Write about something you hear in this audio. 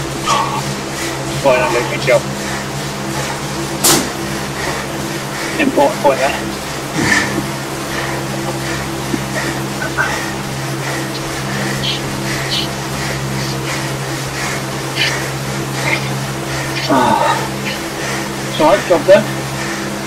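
An indoor bike trainer hums steadily.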